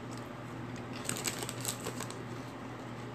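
A man crunches a crisp potato chip close by.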